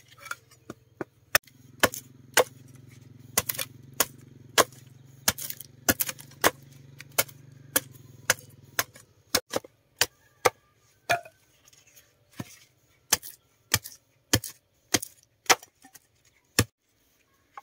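A machete chops into wood with sharp, regular knocks.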